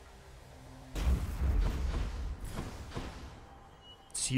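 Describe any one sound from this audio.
A lightning bolt strikes with a loud crackling boom.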